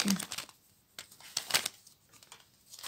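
Paper packets rustle softly in a hand.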